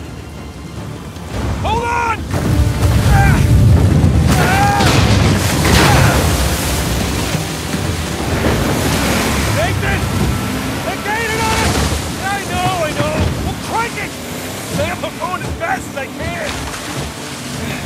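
A man shouts urgently over the noise.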